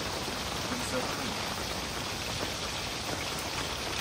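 A fire crackles in a stove.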